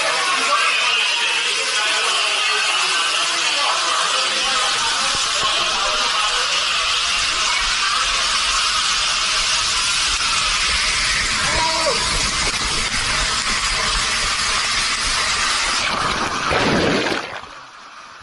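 Water rushes loudly through an enclosed slide tube.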